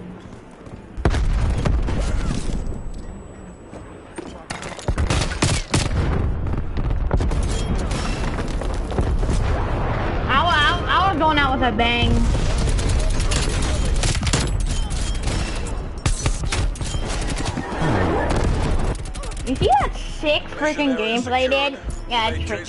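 Video game gunfire rattles in rapid bursts.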